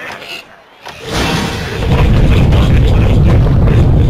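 A loud cartoon crash rumbles as a tower collapses.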